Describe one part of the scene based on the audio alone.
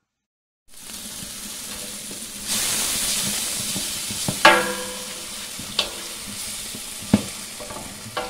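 A spoon stirs and scrapes against a metal pot.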